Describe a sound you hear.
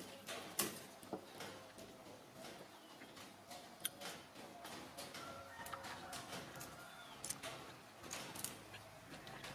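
Small clicks and rustles come from a baby monkey fiddling with a string.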